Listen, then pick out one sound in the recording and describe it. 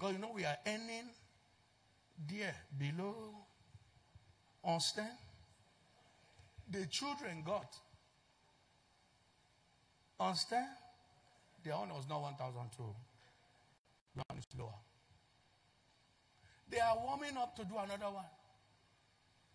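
A man speaks with animation into a microphone, in short bursts with pauses.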